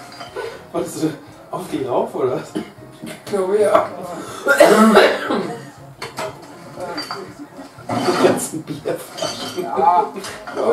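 A young man talks and laughs with animation, close to a microphone.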